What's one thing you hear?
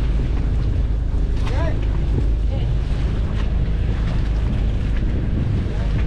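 Strong wind buffets the microphone outdoors on open water.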